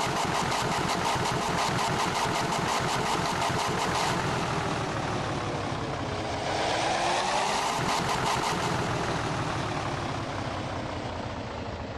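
A bus engine hums and rumbles as the bus pulls in and slows to a stop.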